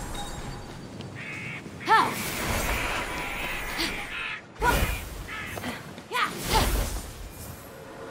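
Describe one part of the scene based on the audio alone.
Footsteps run quickly across stone.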